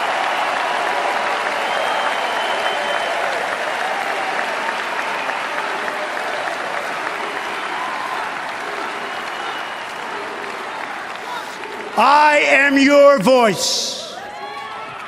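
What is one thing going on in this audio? A large crowd cheers and roars in a huge echoing hall.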